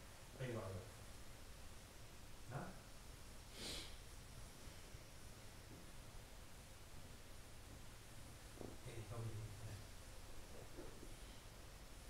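An elderly man speaks briefly and calmly nearby, with long pauses.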